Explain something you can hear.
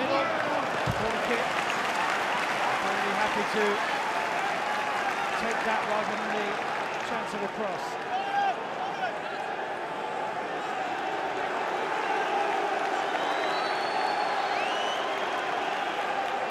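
A large stadium crowd roars and chants steadily all around.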